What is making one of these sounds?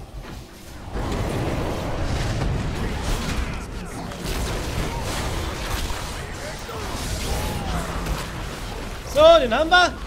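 Video game battle sounds clash and whoosh.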